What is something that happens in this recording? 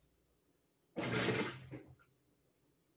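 A top-load washing machine whirs and clunks as it senses the load.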